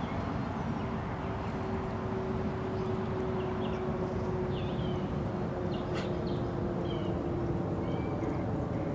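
A kangaroo hops across soft grass with dull thuds.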